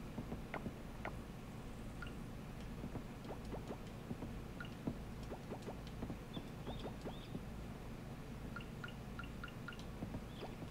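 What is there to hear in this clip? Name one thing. Light footsteps tap on a wooden floor.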